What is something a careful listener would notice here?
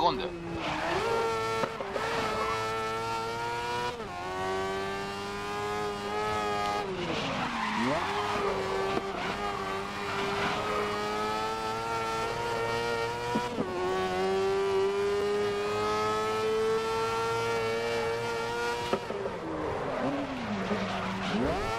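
Tyres screech through tight corners.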